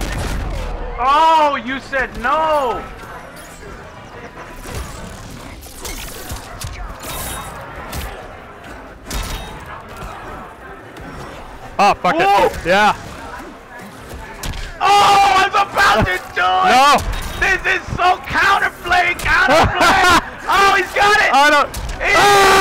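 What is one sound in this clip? Two young men talk and react excitedly, heard through microphones.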